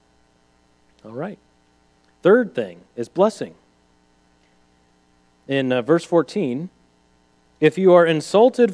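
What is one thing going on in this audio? A man speaks calmly in short bursts with pauses, heard through a microphone.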